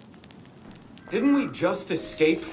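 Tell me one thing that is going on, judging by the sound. A second man answers with a question.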